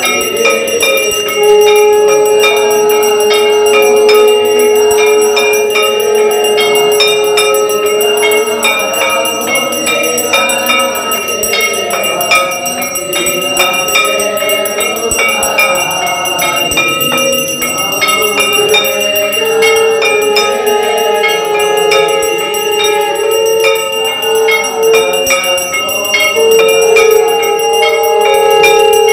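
A group of men sing a hymn together.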